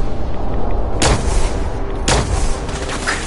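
A heavy gun fires two loud, booming shots.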